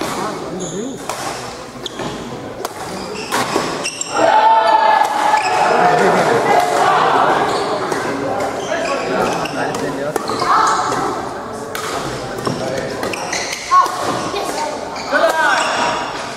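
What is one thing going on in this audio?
Sports shoes squeak on a gym floor.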